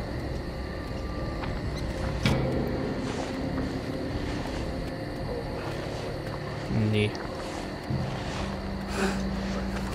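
Tall grass rustles and swishes as someone pushes through it.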